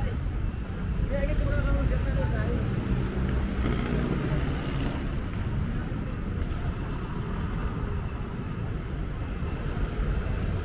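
Traffic rumbles steadily along a busy road nearby.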